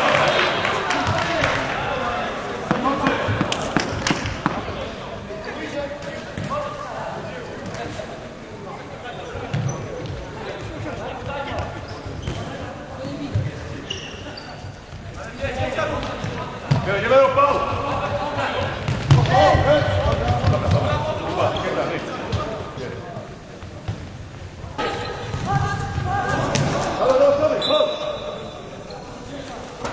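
A ball is kicked with sharp thuds that echo around a large hall.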